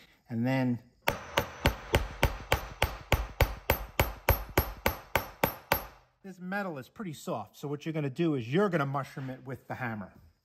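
A hammer taps rapidly on metal.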